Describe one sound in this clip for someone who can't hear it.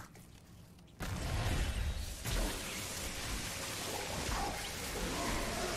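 Game combat sounds crackle and boom.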